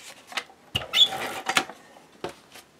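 A tape dispenser rattles as it is set down on a table.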